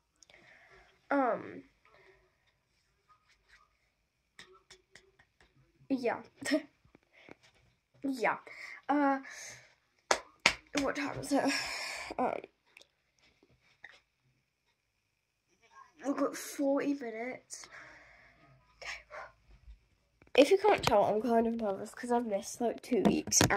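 A young girl talks with animation close to a phone microphone, in short bursts.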